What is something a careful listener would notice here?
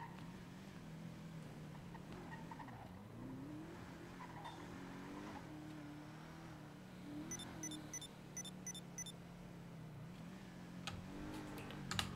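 A car engine hums steadily and revs as the car drives along.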